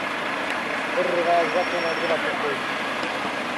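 A car drives past on the road.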